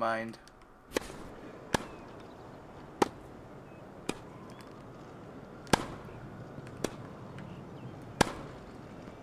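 A tennis ball is hit back and forth with sharp, hollow pops of rackets.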